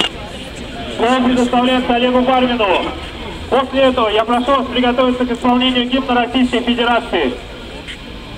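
A man speaks loudly through a megaphone outdoors, his voice echoing.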